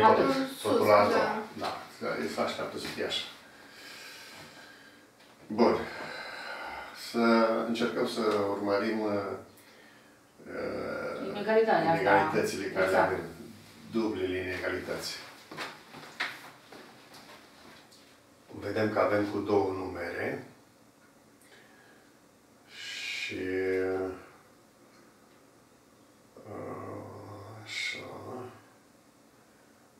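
An elderly man speaks calmly in bursts with pauses, close by.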